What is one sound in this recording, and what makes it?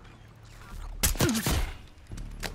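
A pistol fires a single loud, close shot.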